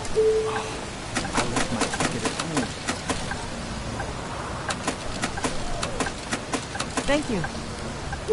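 Coins clink and rattle into a change tray.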